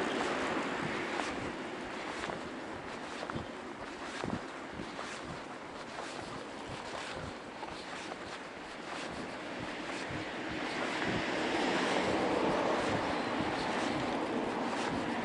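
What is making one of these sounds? Bicycle tyres roll and rattle over a paved path.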